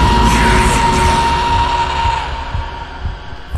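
A creature lets out a loud, harsh scream.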